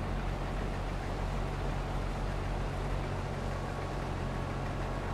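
A combine harvester drones as it runs.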